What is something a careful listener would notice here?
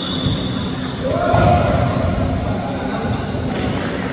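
Young men shout and call out in a large echoing gym.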